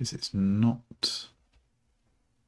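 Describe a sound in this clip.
A man speaks calmly into a microphone, close by.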